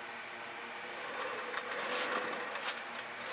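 A wooden board scrapes and knocks.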